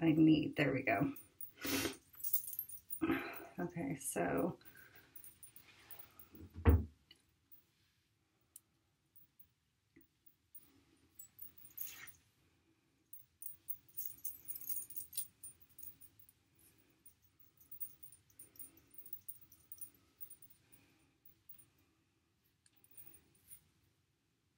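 Hair rustles softly as a woman braids it.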